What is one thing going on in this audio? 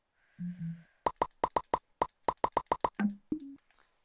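Menu clicks tick rapidly.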